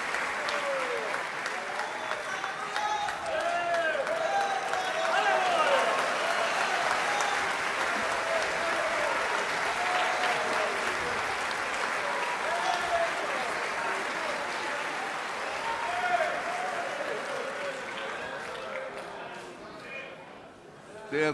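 A crowd of men and women cheers and shouts with joy.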